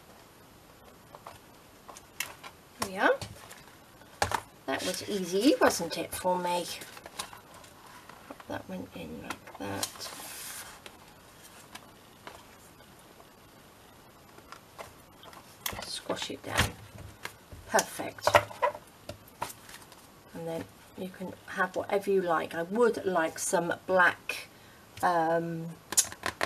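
Stiff paper rustles and slides as it is handled.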